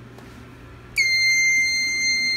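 An alarm panel gives a steady high beep.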